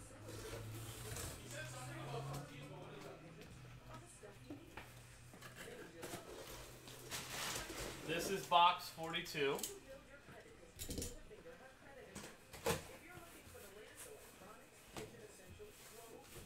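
Cardboard boxes are shifted and set down with soft thumps.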